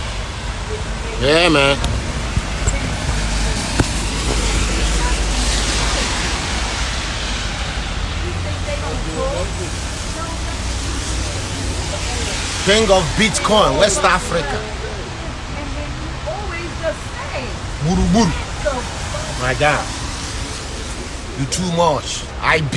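A man speaks close to a phone's microphone, talking casually.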